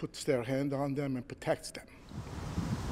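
A middle-aged man speaks calmly into a microphone close by.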